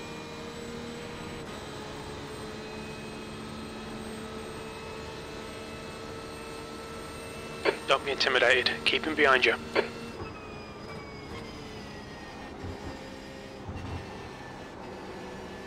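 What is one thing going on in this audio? A race car engine hums steadily and shifts pitch as it changes gear.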